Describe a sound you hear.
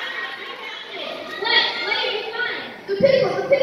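A young girl speaks into a microphone, heard over loudspeakers in a large hall.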